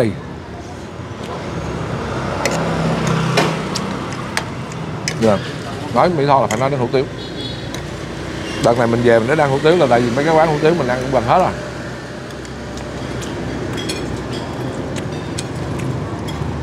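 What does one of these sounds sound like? A fork and spoon clink against a plate.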